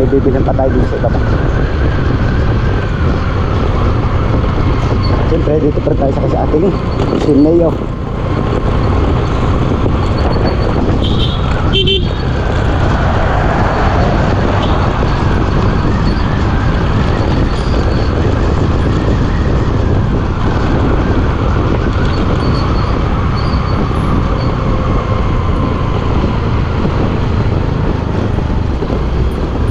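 Wind rumbles loudly against the rider.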